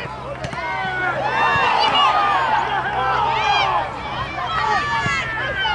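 Spectators cheer loudly as play nears the goal.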